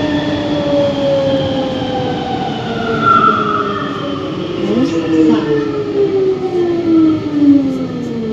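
The electric motors of a rubber-tyred automated metro whine and fall in pitch as it slows into a station.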